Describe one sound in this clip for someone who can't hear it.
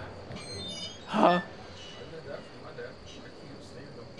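A heavy metal gate creaks open.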